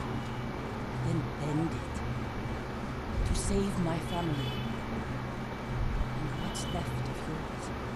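A young woman speaks firmly and urgently.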